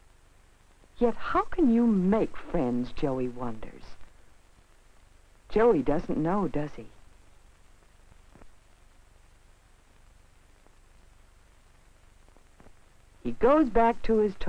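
A young boy talks nearby, with animation.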